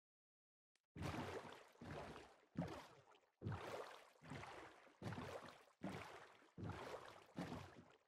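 Oars splash rhythmically through water.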